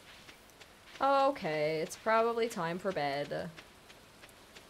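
A young woman speaks casually into a close microphone.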